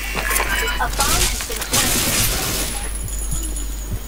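A rifle is reloaded with metallic clicks and clacks.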